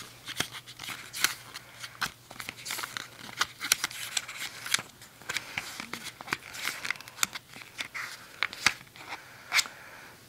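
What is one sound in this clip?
Paper pages rustle as they are flipped.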